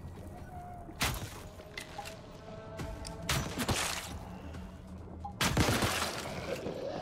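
Gunshots bang loudly a few times.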